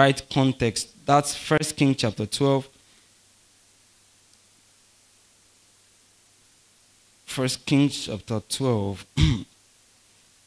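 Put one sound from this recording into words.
A man speaks calmly through a microphone, in bursts with long pauses.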